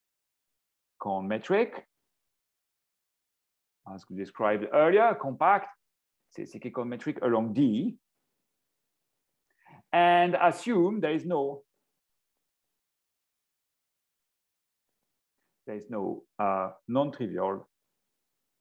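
A man speaks calmly through a microphone in an online call, pausing now and then.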